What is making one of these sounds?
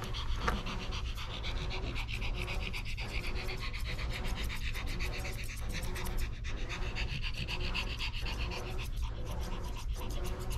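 Scissors snip rapidly through a dog's fur.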